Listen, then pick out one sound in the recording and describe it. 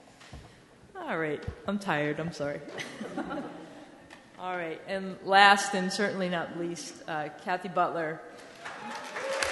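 A woman speaks into a microphone in a calm, friendly voice, heard through a loudspeaker in a large room.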